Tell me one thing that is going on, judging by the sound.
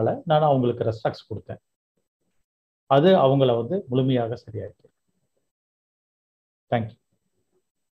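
A middle-aged man speaks calmly in short bursts, heard through an online call.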